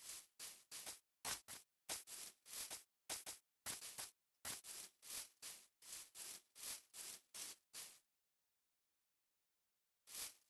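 Footsteps rustle steadily through grass.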